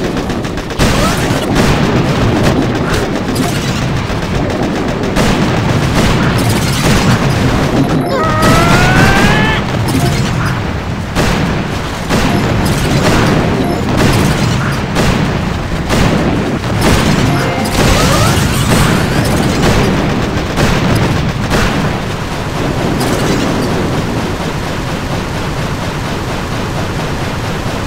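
Cannons and guns fire in rapid bursts.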